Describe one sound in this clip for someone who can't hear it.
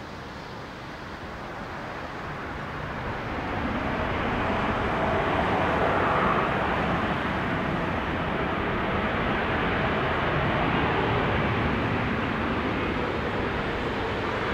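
Tyres hiss through spray on a wet runway.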